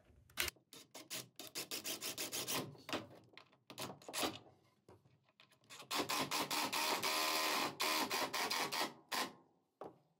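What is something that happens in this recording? A cordless drill whirs in short bursts and then runs steadily, driving a screw into wood.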